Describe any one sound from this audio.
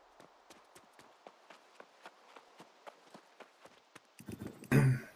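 Footsteps patter quickly along a dirt path.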